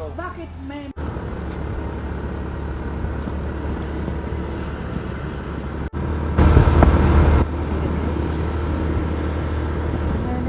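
A car engine hums steadily while driving in traffic.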